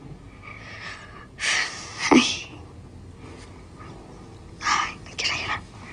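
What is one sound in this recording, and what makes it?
A young girl laughs softly through tears.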